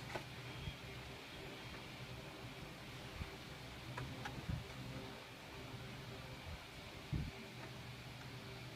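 A plastic dome knocks and taps under handling.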